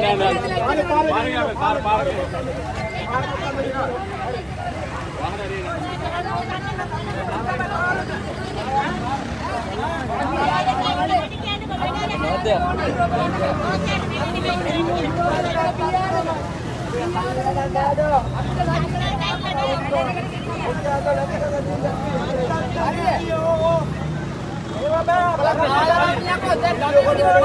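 A crowd of men shout and argue loudly outdoors, close by.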